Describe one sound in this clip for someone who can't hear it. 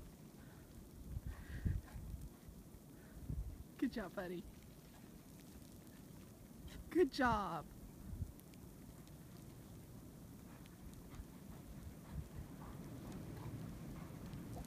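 A dog bounds through deep snow with soft, muffled thumps.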